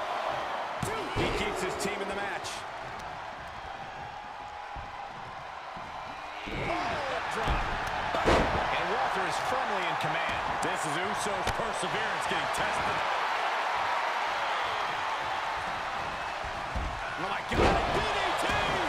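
Wrestlers' bodies slam onto a ring mat with heavy thuds.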